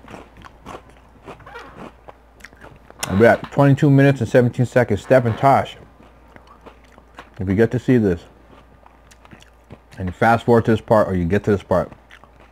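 A man chews food with soft wet smacking sounds.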